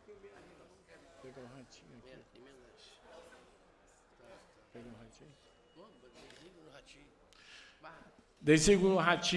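An elderly man speaks quietly in the background, heard faintly.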